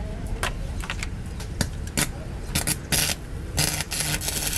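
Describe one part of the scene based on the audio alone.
A cutting torch pops and snaps in short bursts.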